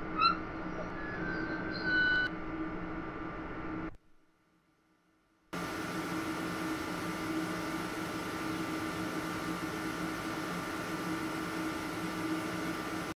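An electric locomotive hums steadily.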